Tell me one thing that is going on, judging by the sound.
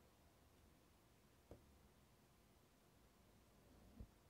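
A rubber stamp presses onto paper.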